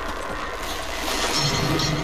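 A fiery blast bursts and crackles.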